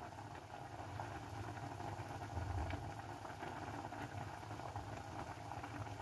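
Oil trickles from a bottle into a bowl.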